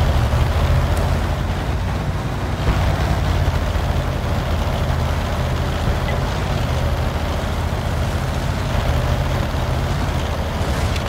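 A tank engine rumbles steadily as the tank drives along.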